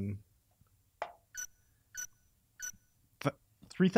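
Short electronic beeps sound as a menu cursor moves.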